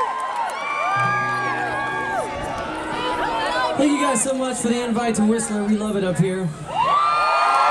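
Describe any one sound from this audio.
An acoustic guitar strums on a stage.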